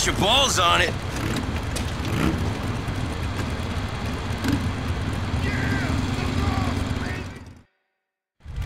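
Motorcycle engines idle with a low, steady rumble.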